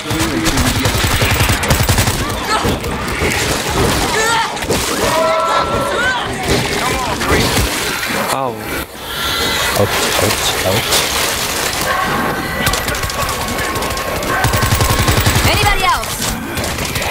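Zombies snarl and groan in a crowd.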